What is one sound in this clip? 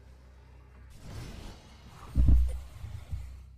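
A deep whoosh swells and ends in a low boom.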